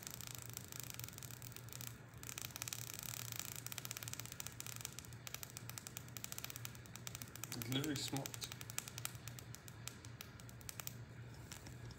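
An electric bug zapper hums steadily.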